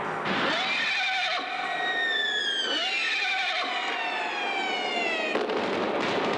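Horses neigh loudly.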